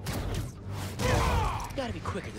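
A heavy punch lands with a thud.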